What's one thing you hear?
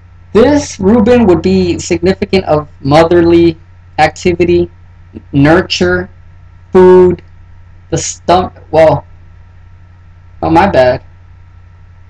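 A man speaks calmly and close by, explaining in short phrases.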